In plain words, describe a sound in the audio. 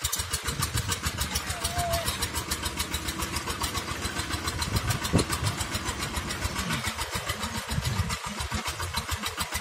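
Metal tines churn and scrape through dry soil.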